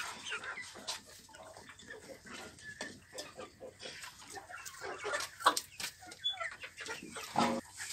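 Chickens peck rapidly at a plastic feeder tray.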